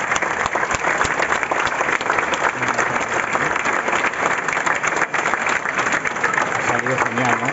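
A large crowd claps steadily outdoors.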